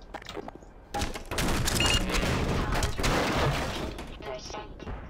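A wooden crate smashes and splinters loudly.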